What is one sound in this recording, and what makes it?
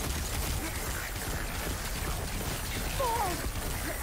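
Energy bolts zap and crackle.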